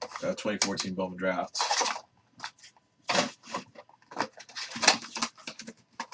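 Cardboard rustles as a box lid is opened and folded.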